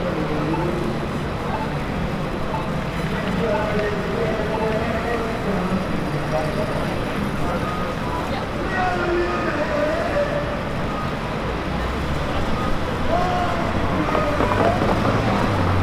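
A crowd of people chatters in a busy city street.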